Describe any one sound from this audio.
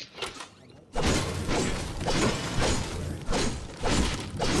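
A pickaxe strikes wooden furniture repeatedly.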